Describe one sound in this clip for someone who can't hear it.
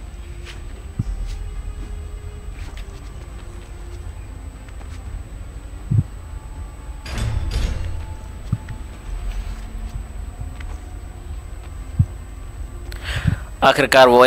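Soft thuds sound as a figure jumps, grabs and lands on stone.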